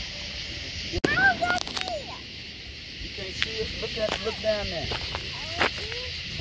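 A child calls out excitedly nearby.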